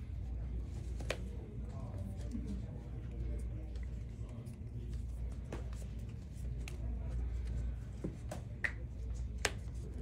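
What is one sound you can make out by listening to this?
Cards shuffle and riffle in hands.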